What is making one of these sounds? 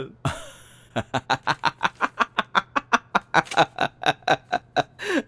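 A man laughs loudly in bursts.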